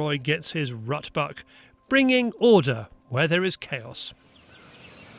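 A man speaks calmly outdoors, close by.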